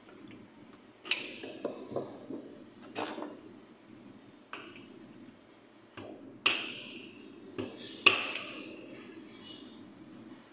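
A hammer strikes metal with sharp, ringing blows.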